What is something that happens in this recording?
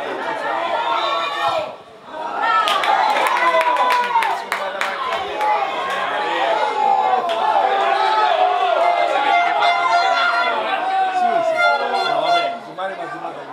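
A crowd of men shouts and cheers excitedly nearby, outdoors.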